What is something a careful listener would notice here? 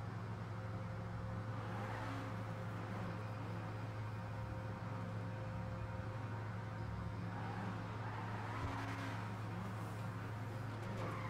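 A car engine hums steadily as the car drives slowly.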